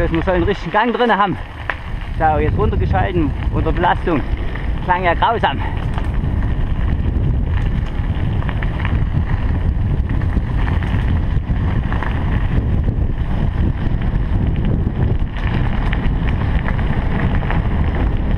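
Bicycle tyres crunch over a gravel track.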